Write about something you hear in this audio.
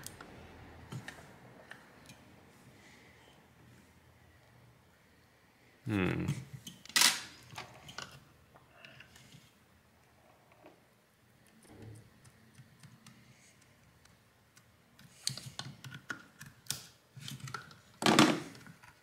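Plastic parts click and rattle as a device is taken apart by hand.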